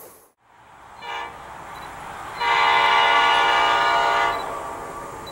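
A train horn blares from down the track.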